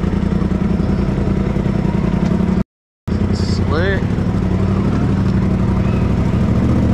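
An off-road vehicle's engine rumbles steadily up close.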